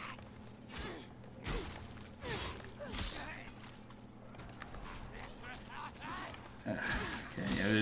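A blade slashes and strikes a creature.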